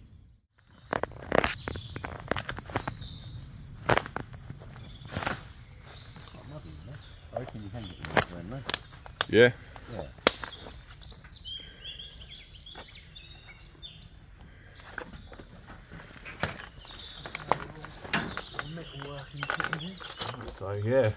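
Leaves and plants rustle and swish as someone pushes through thick undergrowth.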